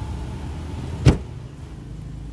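A car's rear hatch slams shut with a loud thud.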